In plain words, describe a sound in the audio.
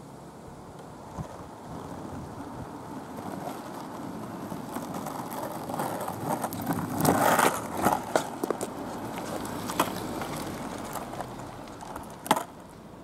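A car approaches and drives past.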